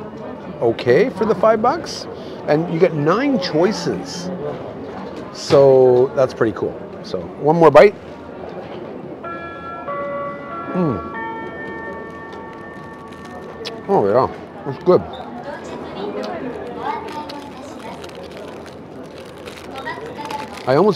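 A middle-aged man chews food with his mouth close by.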